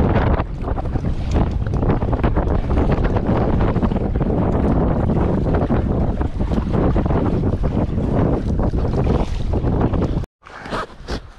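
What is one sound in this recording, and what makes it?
Strong wind buffets a microphone outdoors.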